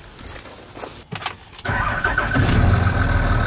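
A diesel truck engine cranks and starts up.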